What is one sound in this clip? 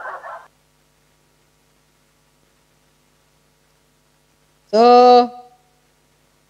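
A middle-aged woman speaks briefly and calmly, close by.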